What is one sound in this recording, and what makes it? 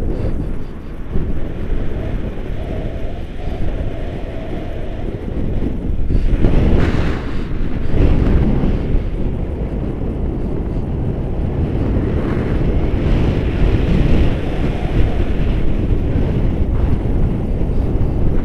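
Wind rushes and buffets loudly past a microphone.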